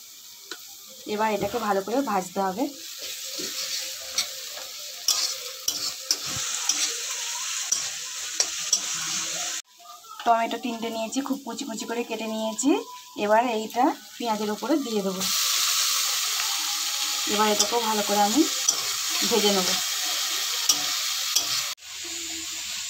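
Food sizzles and crackles in a hot pan.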